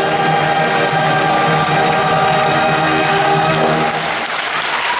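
A large choir of men and women sings a final held chord loudly.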